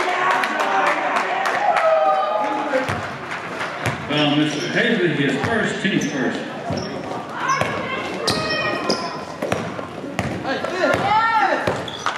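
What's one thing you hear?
A basketball bounces on a hard floor with an echo.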